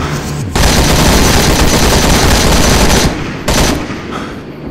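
A rifle fires in rapid bursts, loud and close.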